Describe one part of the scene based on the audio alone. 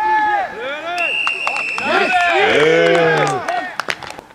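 A referee blows a long whistle blast.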